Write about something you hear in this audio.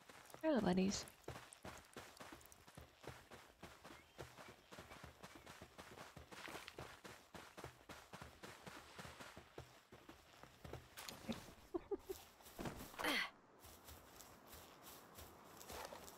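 Quick footsteps patter on sand and grass.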